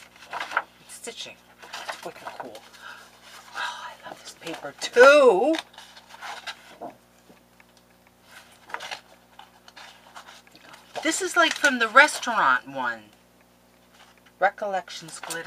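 Sheets of paper rustle and flap in a hand.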